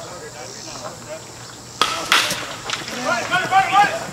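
A baseball bat cracks against a ball outdoors.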